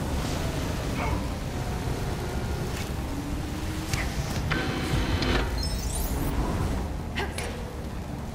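Metallic clanks and zaps ring out now and then.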